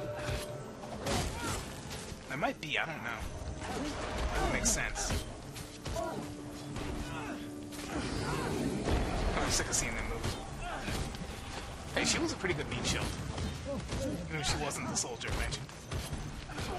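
Weapons clash and magic blasts burst in a fight.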